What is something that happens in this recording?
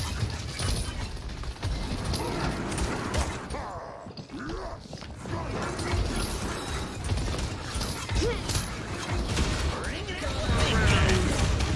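Rapid gunfire blasts and crackles.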